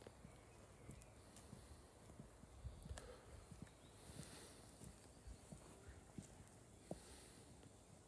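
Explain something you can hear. Footsteps scuff softly on a stone path outdoors.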